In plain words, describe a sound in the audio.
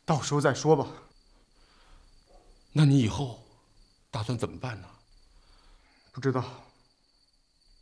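A young man speaks quietly and calmly nearby.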